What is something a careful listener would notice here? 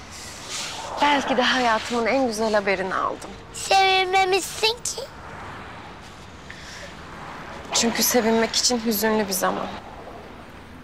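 A young woman speaks softly and warmly up close.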